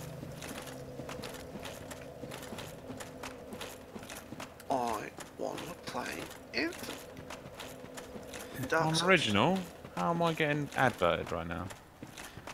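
Footsteps crunch quickly on gravel.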